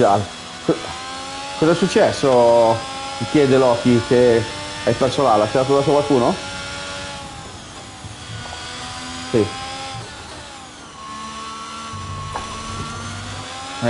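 A racing car engine whines, rising and falling as it shifts gears.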